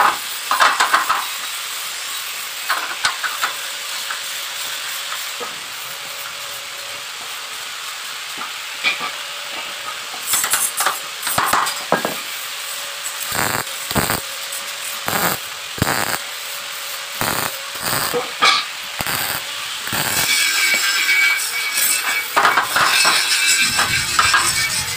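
Metal parts clink and tap against each other.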